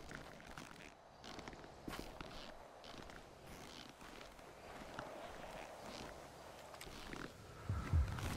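Footsteps rustle through dense brush and leaves.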